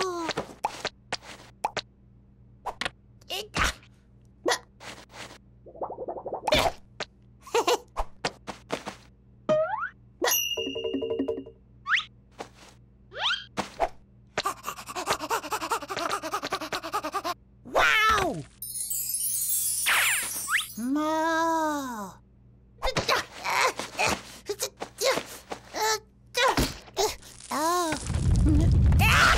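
A small cartoon chick chirps and squeaks excitedly.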